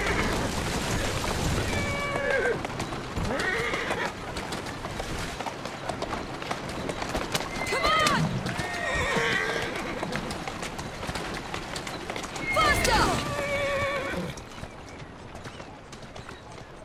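Carriage wheels rumble over a cobbled road.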